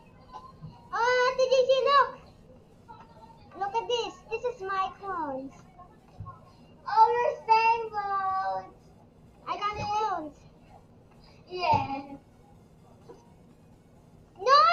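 A young girl talks excitedly and close to a microphone, in short bursts.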